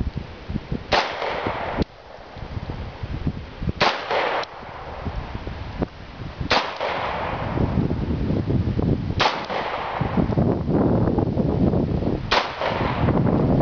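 A pistol fires loud single shots outdoors, each followed by a short echo.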